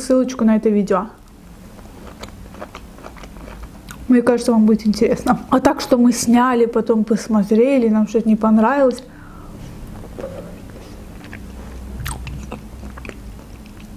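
A young woman chews and crunches fruit close to a microphone.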